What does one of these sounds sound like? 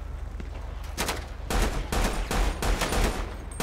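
Gunshots fire in quick bursts close by.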